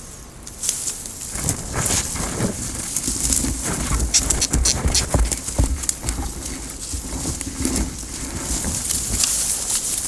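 Leaves and stems rustle as gloved hands push through a shrub.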